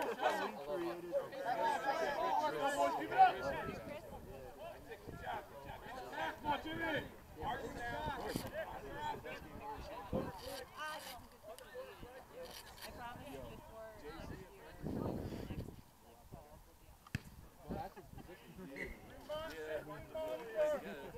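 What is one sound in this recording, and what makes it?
Players shout and call out across an open field outdoors.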